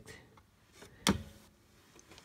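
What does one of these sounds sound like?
A plastic button clicks once.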